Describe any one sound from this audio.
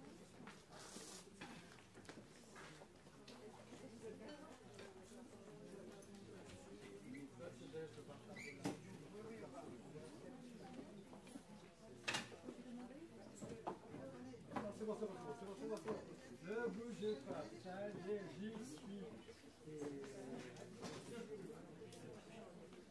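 A crowd of people chatter throughout a large echoing hall.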